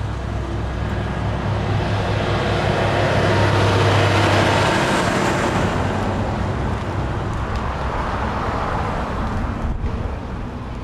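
A truck drives past close by, rising and then fading.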